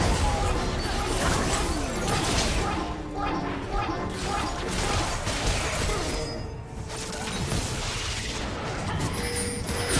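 Game characters strike each other with sharp hits.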